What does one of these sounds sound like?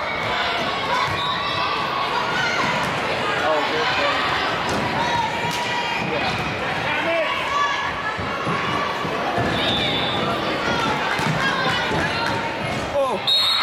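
A crowd of spectators chatters and cheers loudly in a large echoing gym.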